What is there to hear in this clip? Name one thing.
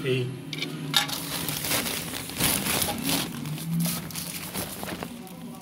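A plastic sheet rustles and crinkles.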